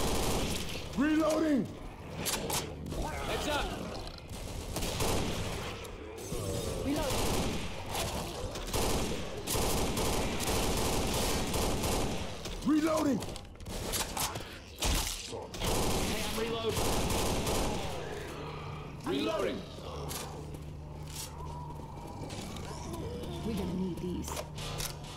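Zombies snarl and growl.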